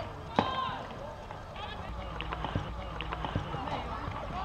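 Hockey sticks sharply strike a ball several times.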